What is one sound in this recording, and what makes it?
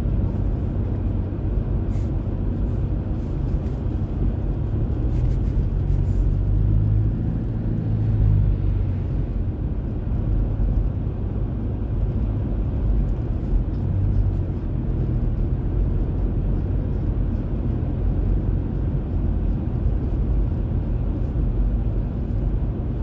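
A car's cabin rumbles with low road and engine noise while driving.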